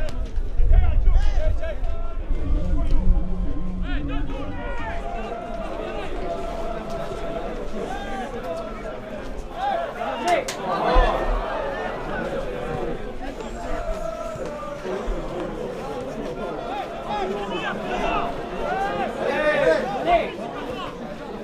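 A crowd murmurs and cheers outdoors.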